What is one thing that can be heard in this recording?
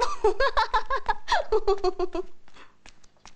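A young girl laughs loudly.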